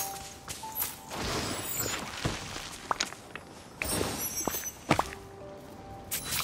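Magical sparkling chimes shimmer and whoosh.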